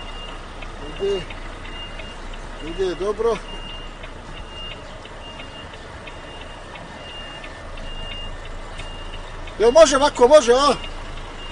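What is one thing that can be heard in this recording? A man talks briefly nearby.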